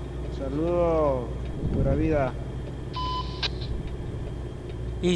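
A truck engine rumbles steadily at low pitch.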